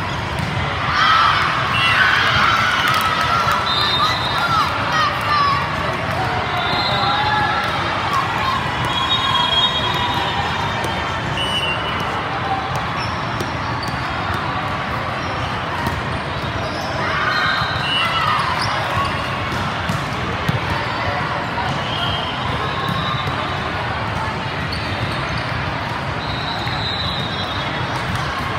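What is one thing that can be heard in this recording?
A crowd of players and spectators murmurs and shouts in a large echoing hall.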